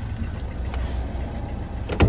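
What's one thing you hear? A hand rubs against plastic car trim.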